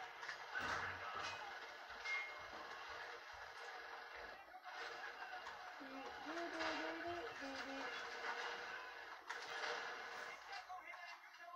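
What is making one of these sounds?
Video game sound effects and music play from a television loudspeaker.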